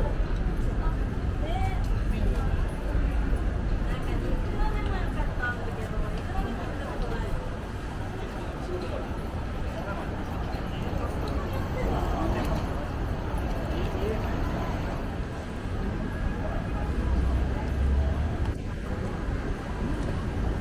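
A busy street murmurs with the distant chatter of a crowd outdoors.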